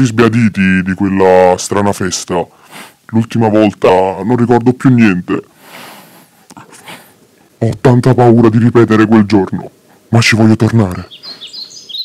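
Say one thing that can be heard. A young man raps into a close microphone with animation.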